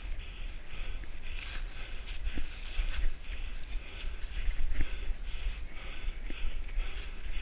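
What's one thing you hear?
Footsteps crunch through dry leaves at a steady pace.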